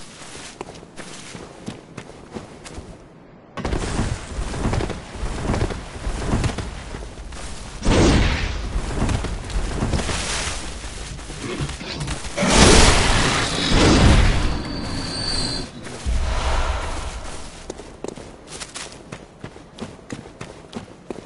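Footsteps crunch quickly over ground.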